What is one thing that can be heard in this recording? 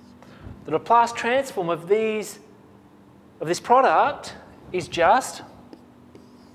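A man speaks calmly and clearly, as if lecturing.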